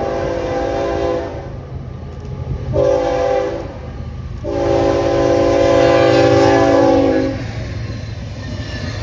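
A diesel locomotive engine rumbles past close by.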